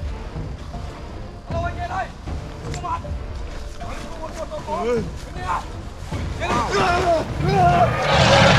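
Young men shout and talk excitedly outdoors.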